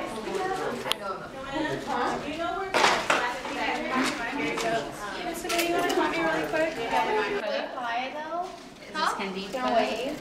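Several young women talk and chat nearby.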